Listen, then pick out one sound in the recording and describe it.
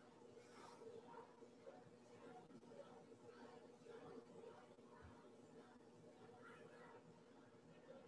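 A woman speaks.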